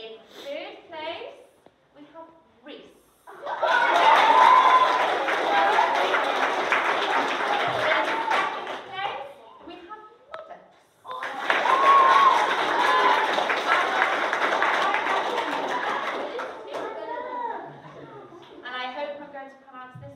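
A woman speaks calmly to a group of children.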